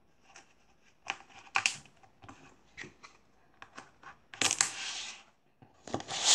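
Small objects rustle and clack against a table.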